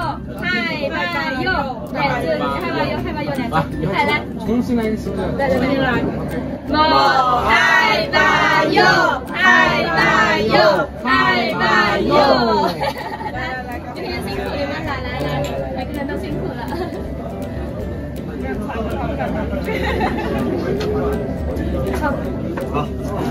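Several young women and men talk and laugh together close by.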